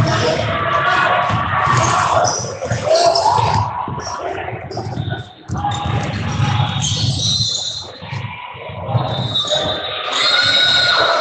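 Spectators talk and call out in a large echoing gym.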